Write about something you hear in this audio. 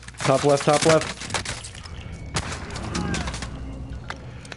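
Rapid gunshots ring out in quick bursts.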